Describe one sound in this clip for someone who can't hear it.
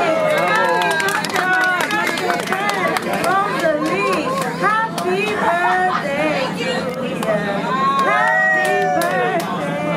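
A crowd of women and children sings together cheerfully close by.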